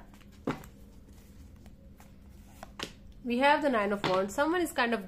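Playing cards shuffle and flick against each other.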